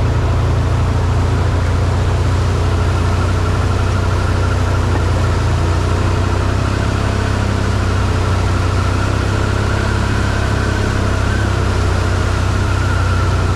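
Tyres splash and churn through muddy water.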